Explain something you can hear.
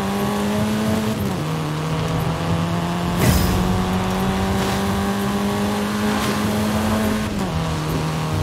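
A car engine hums steadily, shifting gears as it drives.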